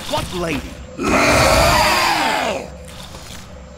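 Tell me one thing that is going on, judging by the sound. A monstrous creature lets out a loud, rasping roar.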